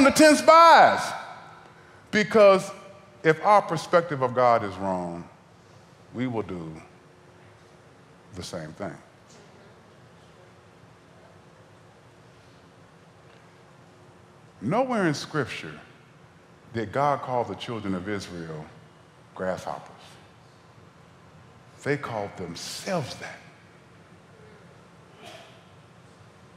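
A man speaks with animation into a headset microphone, pausing now and then.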